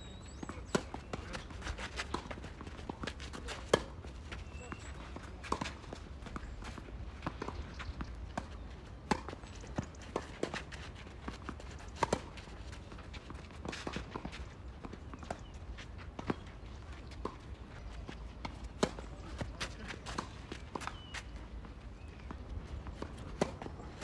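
Shoes scuff and slide on a clay court.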